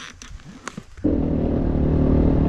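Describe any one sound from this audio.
A motorbike engine starts and runs loudly.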